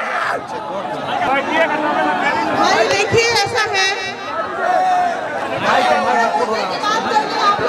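A young woman speaks with animation into a microphone over a loudspeaker.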